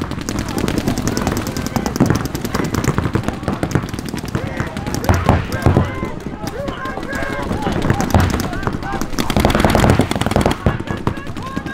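Paintball markers fire in rapid bursts of sharp pops.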